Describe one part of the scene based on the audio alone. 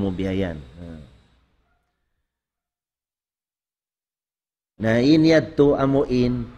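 An elderly man reads aloud in a slow, chanting voice close to a microphone.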